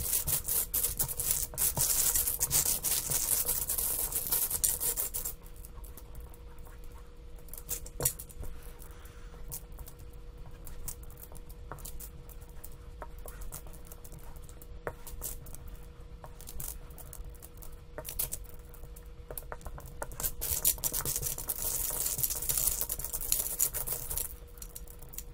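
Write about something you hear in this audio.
Plastic tiles rattle and slide as a hand shuffles them across a table.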